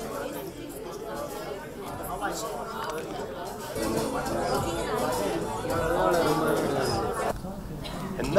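A crowd of people chatter and murmur nearby.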